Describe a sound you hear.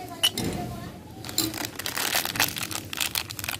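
A plastic wrapper crinkles between fingers.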